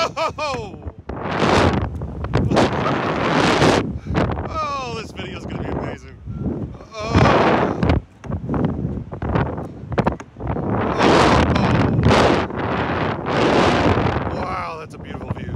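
Wind roars loudly past a close microphone in strong gusts.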